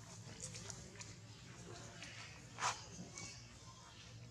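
A baby monkey squeals shrilly.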